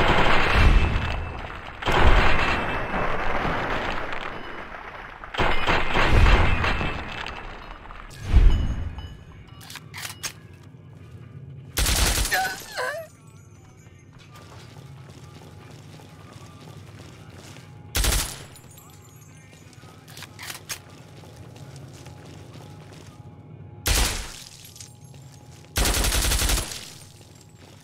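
Silenced gunshots thud sharply now and then.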